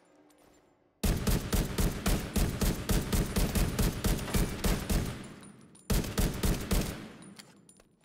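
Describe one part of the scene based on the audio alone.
A rifle fires rapid bursts of gunshots in a large echoing hall.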